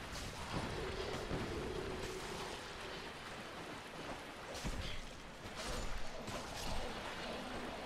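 A sword swings and strikes with a sharp metallic clang.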